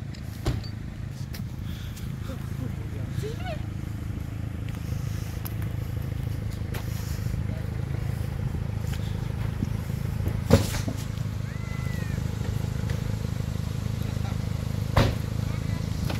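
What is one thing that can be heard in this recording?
A four-wheel-drive engine idles and revs while crawling downhill.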